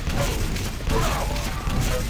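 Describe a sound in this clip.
A rocket explodes with a loud boom.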